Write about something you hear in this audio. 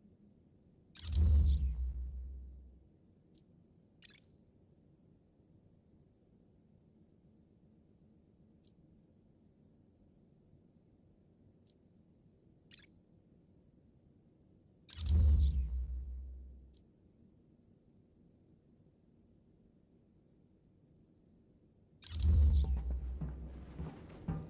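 A deep whoosh swells up and slowly fades as the menu changes.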